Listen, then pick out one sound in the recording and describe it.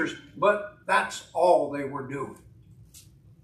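A middle-aged man speaks with emphasis through a microphone.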